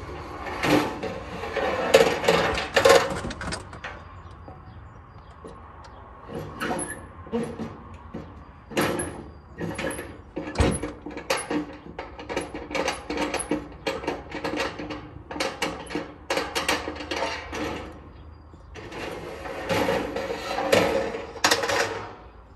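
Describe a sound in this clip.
Metal knocks and scrapes close by.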